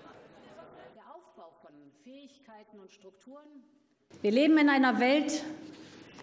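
A middle-aged woman speaks calmly through a microphone and loudspeakers in a large echoing hall.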